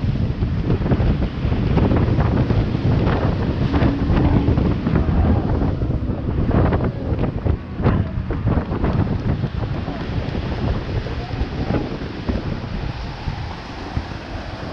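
A speedboat engine roars steadily at speed.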